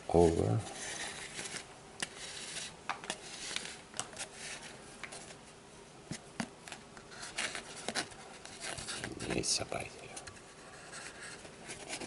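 Fingers tap and click on a cardboard tube.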